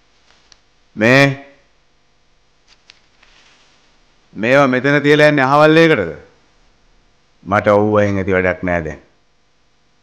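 A man calls out loudly and close by in short bursts.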